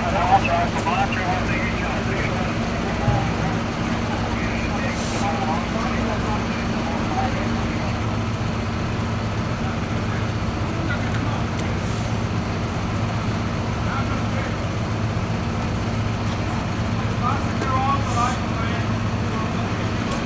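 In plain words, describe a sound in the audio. Diesel fire engines idle outdoors with a steady low hum.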